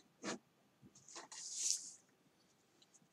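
A sheet of paper rustles and slides across a wooden surface.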